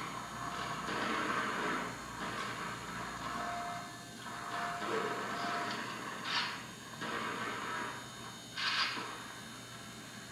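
Gunfire and explosions from a video game play through a television speaker.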